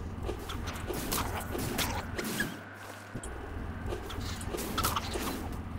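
A magic spell crackles and whooshes in bursts.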